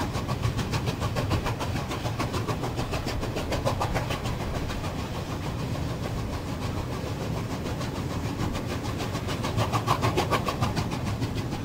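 Train wheels rumble steadily on the rails.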